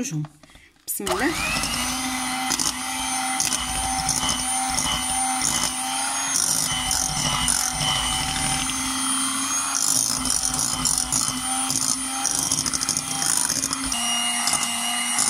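An electric hand mixer whirs steadily as its beaters whip thick cream.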